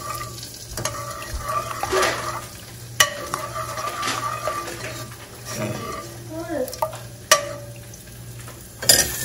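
A metal ladle clinks against a metal pot.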